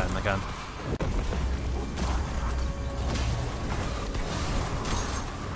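Explosions boom with a low rumble.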